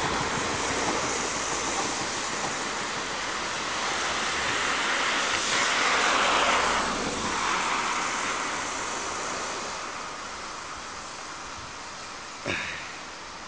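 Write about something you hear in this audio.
A train rumbles along the tracks toward the listener and passes close by.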